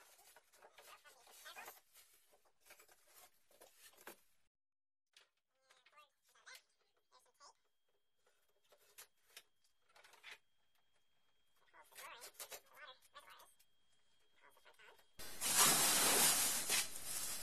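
Plastic wrapping rustles and crinkles as it is pulled off.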